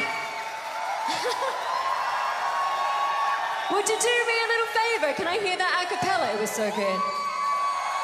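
A young woman speaks and laughs into a microphone, heard over loudspeakers.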